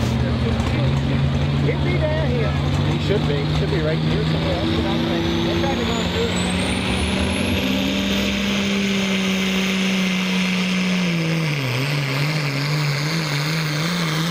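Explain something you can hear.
A tractor's engine roars loudly and steadily, its pitch wavering near the end.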